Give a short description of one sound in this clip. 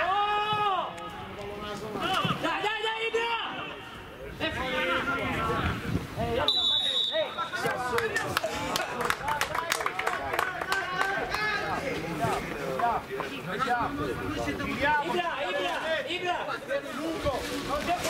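Men nearby on the sideline call out loudly.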